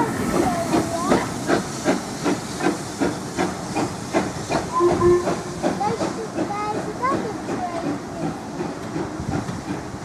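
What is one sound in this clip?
A steam locomotive chuffs rhythmically in the distance.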